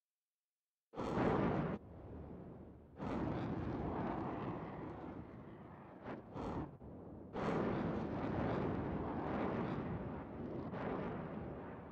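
A spaceship's engines roar and rumble loudly in bursts.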